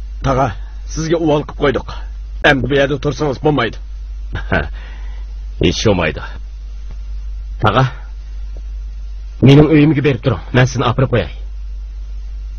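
A man speaks calmly in a deep voice.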